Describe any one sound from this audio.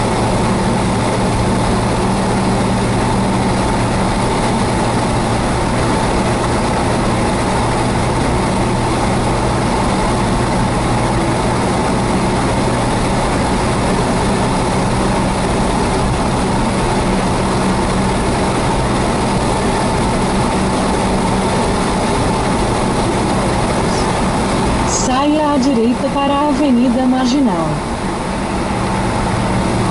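Tyres roar on asphalt.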